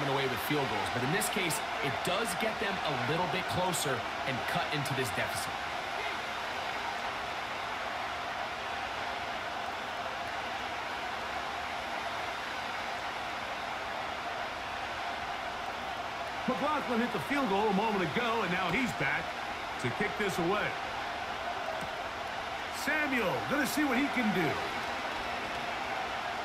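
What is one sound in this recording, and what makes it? A large stadium crowd cheers and murmurs steadily.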